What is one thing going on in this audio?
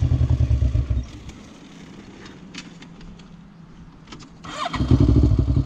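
A quad bike engine idles quietly.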